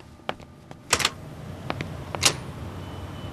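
A door opens and shuts with a click.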